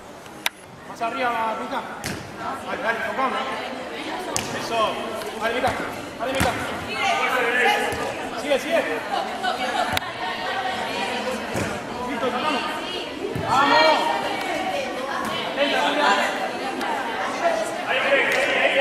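Young women shout and cheer in a large echoing hall.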